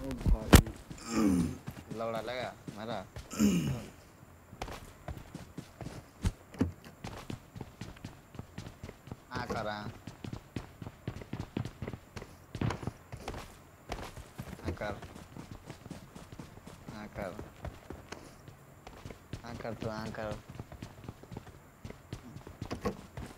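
Footsteps patter quickly on grass and wooden floors.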